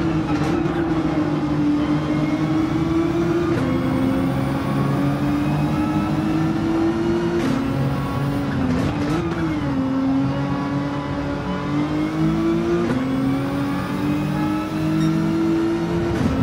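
A racing car engine revs high and shifts through gears.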